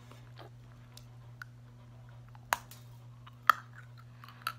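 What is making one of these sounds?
A young boy sucks and smacks on a candy cane.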